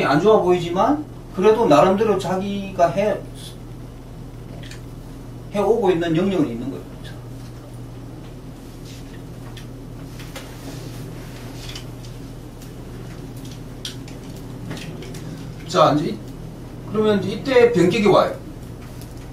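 An older man speaks calmly and slowly, close to a microphone, with long pauses.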